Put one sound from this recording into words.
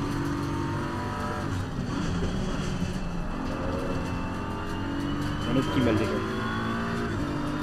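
A racing car engine roars steadily and shifts through gears.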